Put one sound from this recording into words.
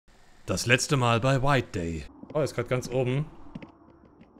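A man speaks with animation close to a microphone.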